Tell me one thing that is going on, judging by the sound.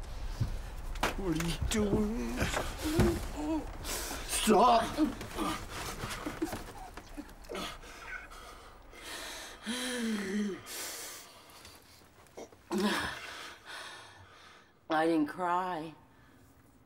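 A young woman sobs and cries out in distress close by.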